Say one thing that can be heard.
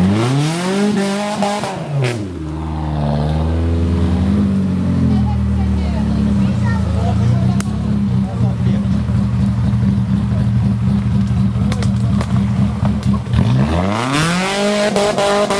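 Tyres churn through mud and grass.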